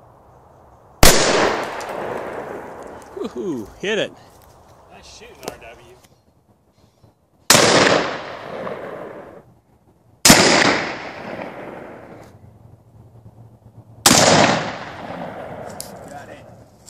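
A gun fires loud single shots that echo outdoors.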